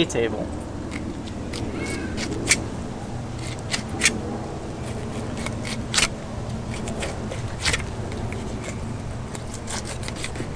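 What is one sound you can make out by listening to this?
A knife scrapes and slices through fish flesh and bone.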